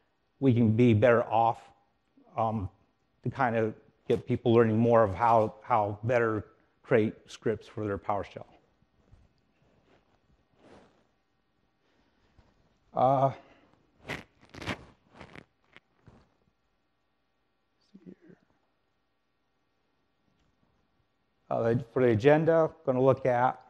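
A man speaks calmly into a microphone, pausing now and then.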